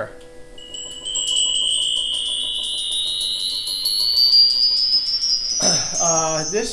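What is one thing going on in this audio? A mechanical organ plays a high, whistling tone that slowly rises.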